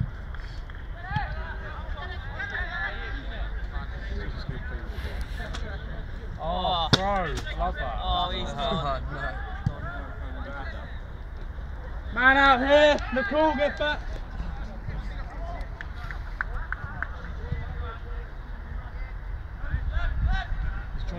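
Young players shout loudly to each other outdoors, some distance away.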